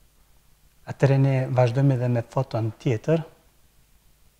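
A man talks calmly, close to a microphone.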